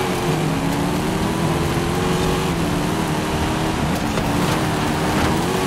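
Tyres hiss and crunch over gravel and snow.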